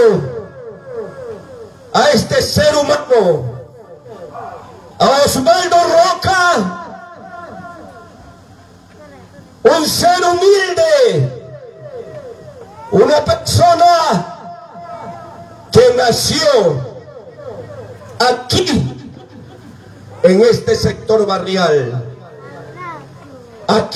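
A man speaks loudly and with animation through a microphone and loudspeakers, in bursts with pauses.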